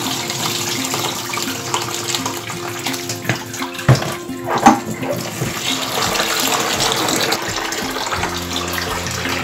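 Water pours and splashes through a metal strainer into a sink.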